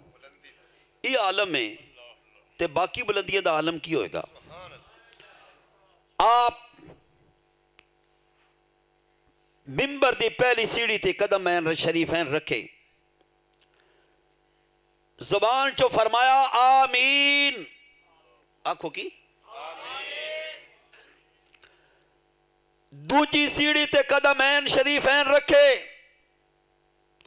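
A man speaks with passion into a microphone, heard through loudspeakers, in bursts with pauses.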